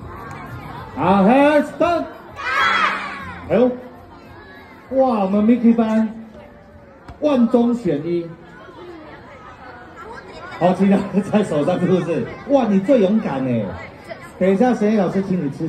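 A young child speaks loudly close by, in short bursts.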